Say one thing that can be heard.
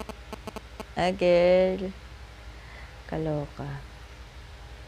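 A young woman speaks close by, in short drawn-out bursts.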